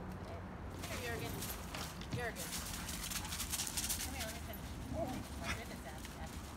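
A woman talks to the dogs nearby.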